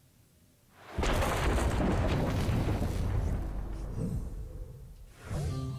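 Electric crackling bursts out loudly and fades away.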